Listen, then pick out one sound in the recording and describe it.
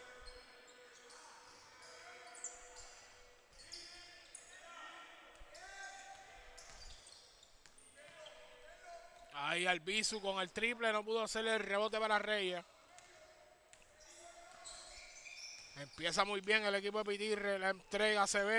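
A basketball bounces on a wooden floor.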